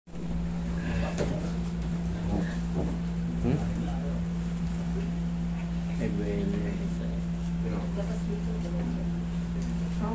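Men and women chat casually nearby.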